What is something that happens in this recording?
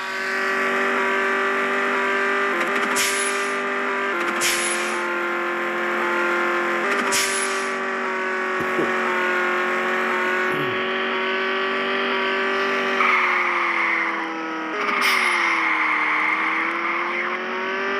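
A sports car engine drones at a steady pitch while cruising.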